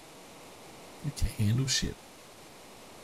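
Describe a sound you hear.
A man speaks briefly and close to a microphone.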